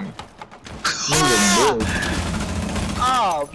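Rapid gunfire blasts through a wooden wall.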